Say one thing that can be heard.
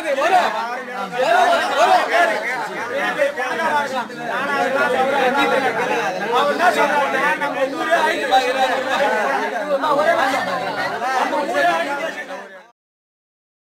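A young man speaks loudly and with passion.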